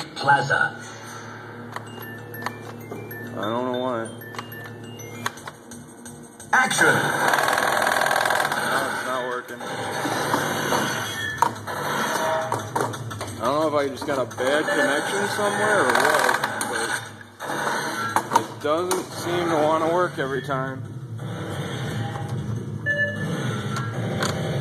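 An arcade game plays loud music through its speakers.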